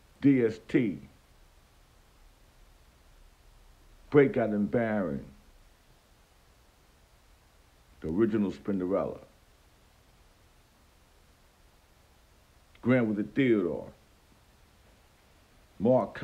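A middle-aged man speaks close to a phone microphone, in short bursts with pauses.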